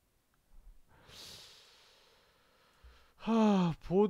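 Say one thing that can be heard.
A magical spell shimmers and hisses.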